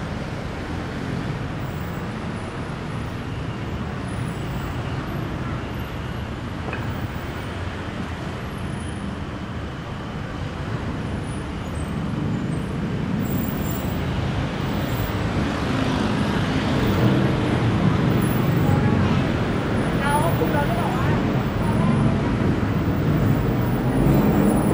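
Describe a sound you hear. Footsteps walk along a pavement.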